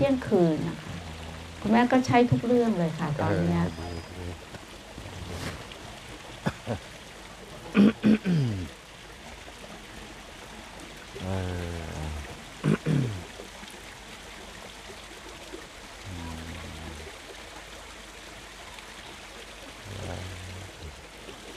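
A man speaks in short bursts nearby, outdoors.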